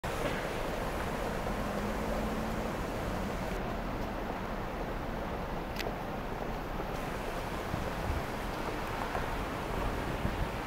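A low, steady hum of city traffic fills the air.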